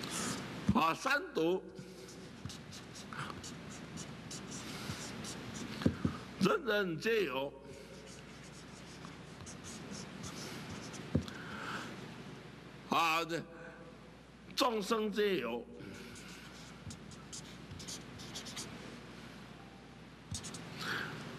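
A felt marker squeaks and scratches across paper.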